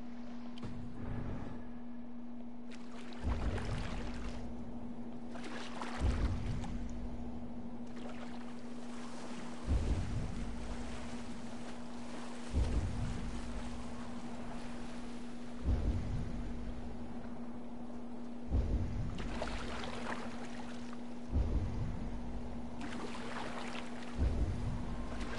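Rough sea water surges and churns steadily.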